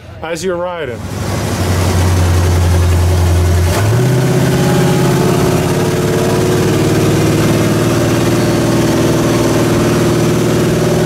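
A large engine starts up and idles with a deep, loud rumble.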